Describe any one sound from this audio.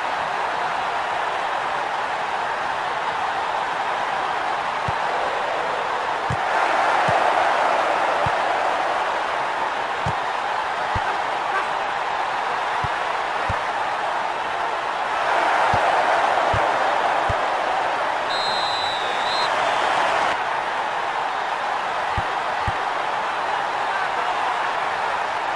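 A stadium crowd roars steadily, swelling louder at times.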